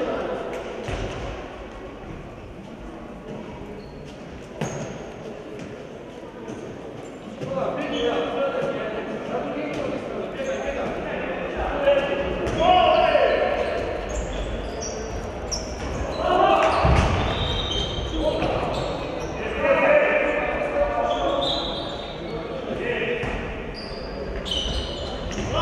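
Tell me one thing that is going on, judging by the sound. A handball bounces on the floor.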